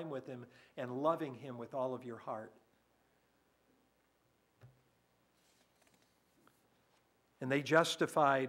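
An elderly man speaks calmly through a microphone, pausing between phrases.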